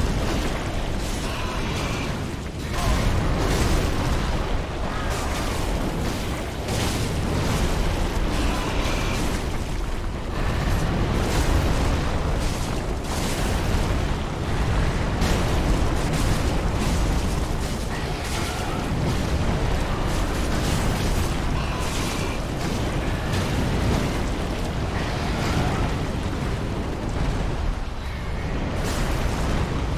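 Sword clashes and heavy impacts ring out in a game battle.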